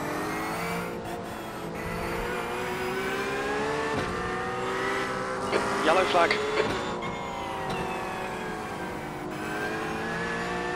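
A racing car engine drones and revs up and down through gear changes.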